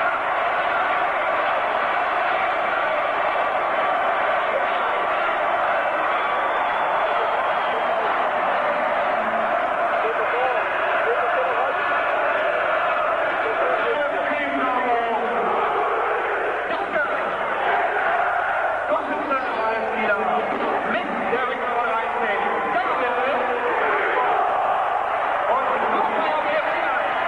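A huge stadium crowd chants and roars loudly.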